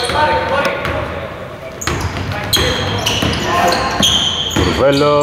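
A basketball bounces on a hard court, echoing in a large hall.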